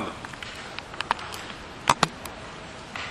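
Paper rustles and clatters on a table.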